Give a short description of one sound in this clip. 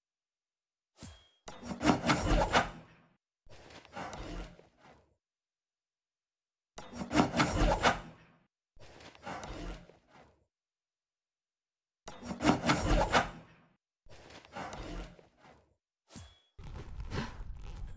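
A lightsaber hums and whooshes through the air in repeated swings.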